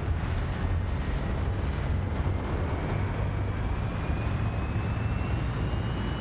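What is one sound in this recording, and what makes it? A huge spaceship's engines rumble deeply and steadily as it hovers.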